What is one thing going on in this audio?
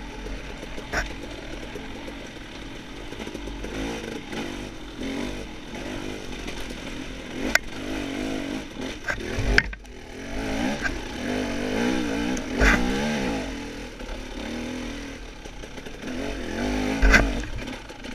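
Knocks and thumps rattle the bike over bumps.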